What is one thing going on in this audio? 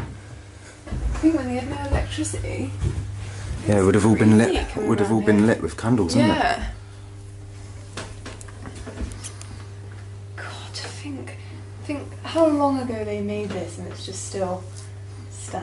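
A young woman speaks close by in a low, muffled voice.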